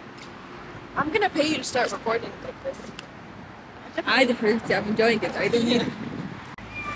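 A young woman talks cheerfully close by.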